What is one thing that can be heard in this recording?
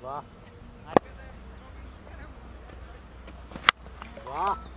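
A cricket bat sharply cracks against a ball outdoors.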